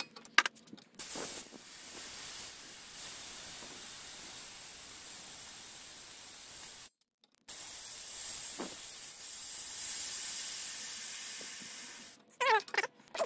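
Compressed air hisses steadily out of a valve.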